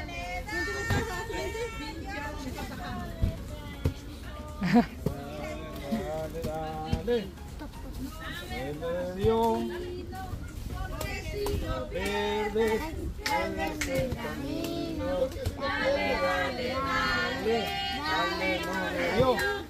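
A girl hits a piñata with a stick with dull thuds.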